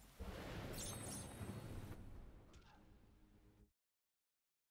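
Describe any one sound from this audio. A loud rushing whoosh swells and slowly fades away.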